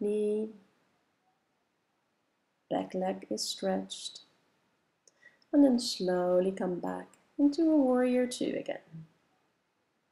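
A woman speaks calmly and softly in short phrases.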